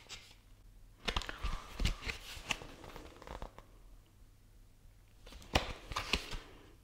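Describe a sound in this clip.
Book pages rustle and are handled.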